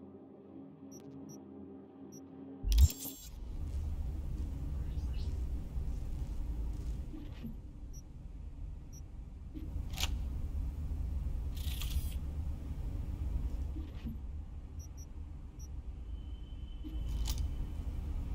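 Soft electronic menu blips and clicks sound now and then.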